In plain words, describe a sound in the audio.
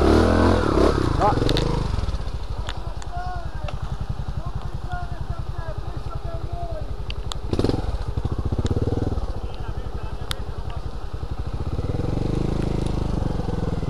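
A motorbike engine throbs steadily close by.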